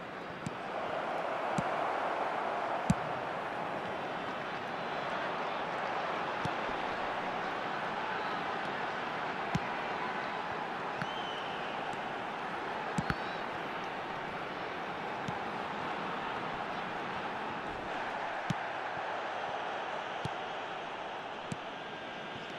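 A football is kicked with short, sharp thuds.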